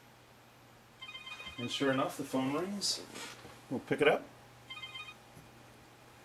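A phone rings with a repeating electronic ringtone.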